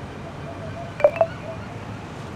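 A short notification chime sounds.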